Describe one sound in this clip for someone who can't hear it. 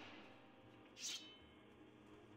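A heavy door scrapes open.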